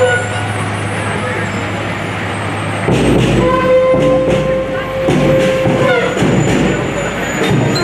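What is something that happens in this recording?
Fire engines roll past at low speed.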